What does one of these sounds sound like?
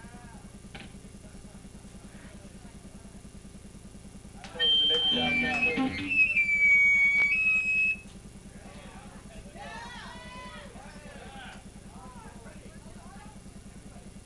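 Electric guitars play loudly.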